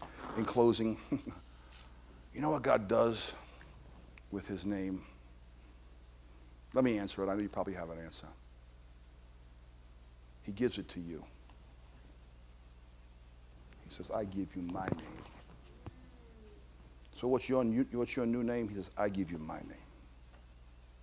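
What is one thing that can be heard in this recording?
A man speaks into a microphone in measured phrases with long pauses.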